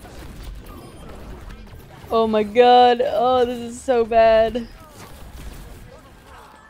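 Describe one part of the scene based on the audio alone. A weapon fires rapid bursts of energy shots.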